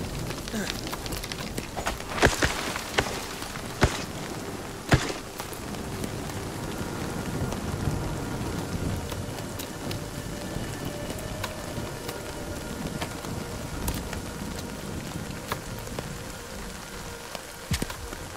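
A young man talks casually and close to a microphone.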